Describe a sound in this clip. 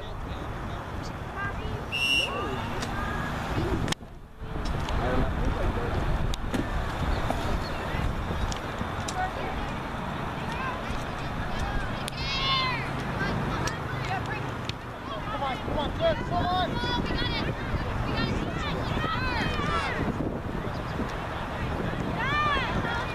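Young girls shout and call out to each other across an open field.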